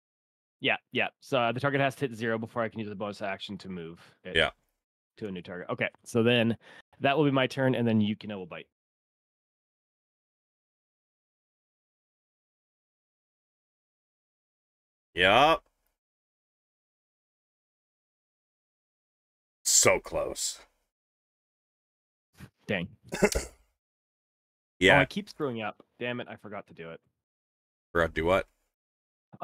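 A man speaks casually into a close microphone, in bursts with long pauses.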